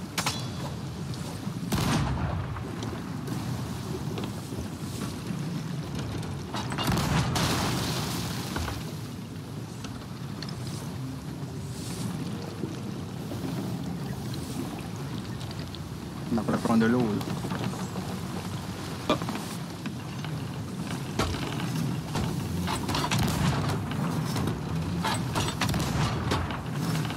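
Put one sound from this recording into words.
Heavy waves surge and crash around a ship.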